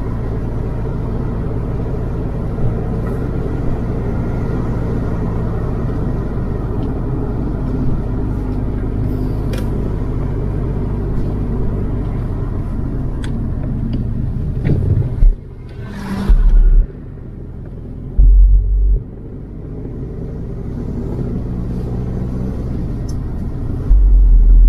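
Tyres roll over a paved road.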